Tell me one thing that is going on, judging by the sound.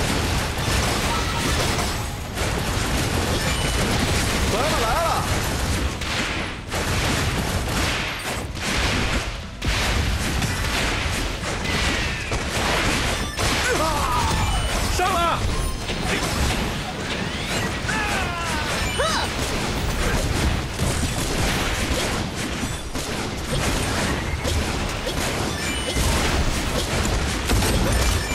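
Gunfire and blasts from a fast action game crackle and boom throughout.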